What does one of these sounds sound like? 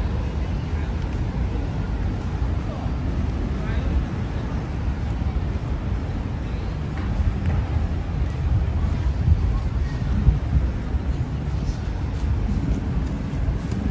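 Men and women chat faintly nearby outdoors.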